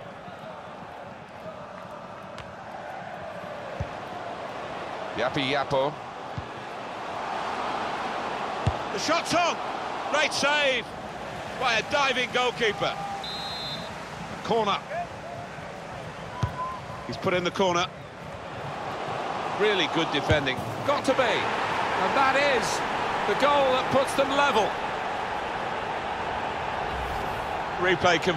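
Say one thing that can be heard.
A large crowd roars and cheers in a big stadium.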